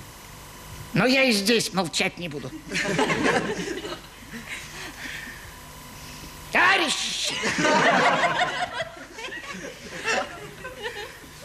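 A man speaks with exaggerated expression, close and clear.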